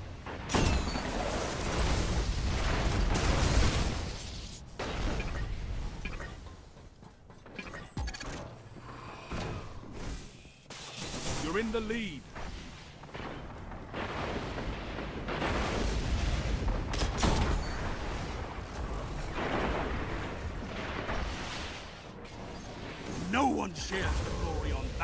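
Guns fire in loud bursts.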